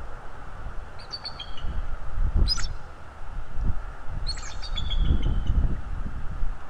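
An eagle gives high, chirping calls.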